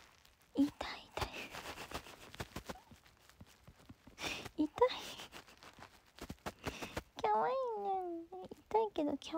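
A kitten meows in short, high cries.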